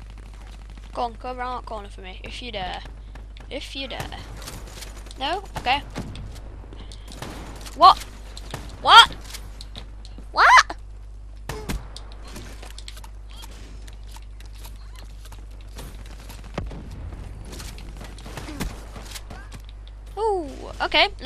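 A young boy talks and exclaims with animation close to a microphone.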